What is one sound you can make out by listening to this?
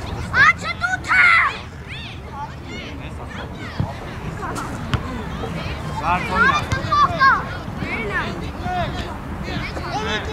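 Young boys shout and call out outdoors.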